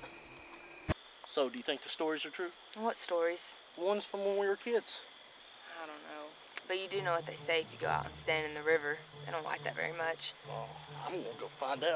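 A young woman talks in a relaxed way, close by.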